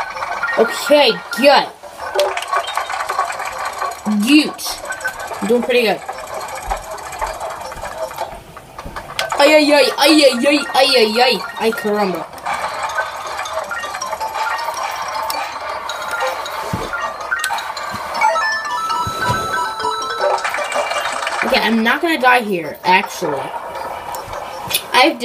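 Small chimes and beeps from a game ring out through a television speaker.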